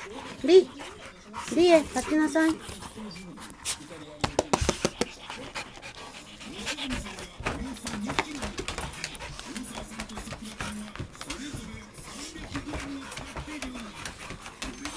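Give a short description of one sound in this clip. Dogs growl and grumble playfully up close.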